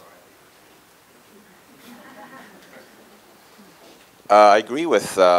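A crowd murmurs quietly in a large room.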